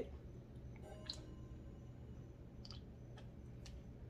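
A woman sips a drink from a can.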